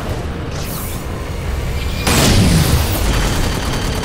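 Laser shots fire in bursts.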